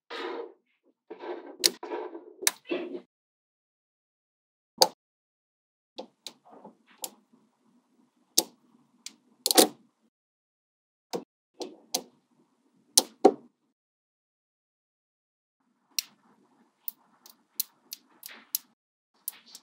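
Small metal magnetic balls click and snap together.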